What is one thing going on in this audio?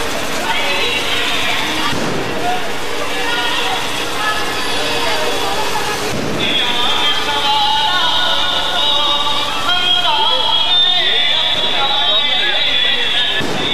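A crowd of men and women talk and call out outdoors.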